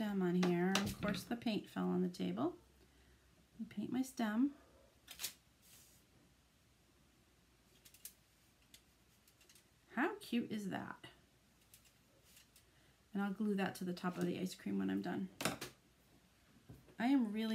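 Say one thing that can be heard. A woman talks calmly over an online call.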